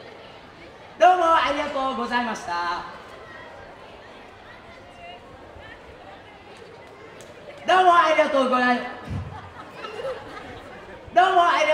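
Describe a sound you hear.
A man shouts loudly into a microphone through loudspeakers outdoors, in short calls with pauses between them.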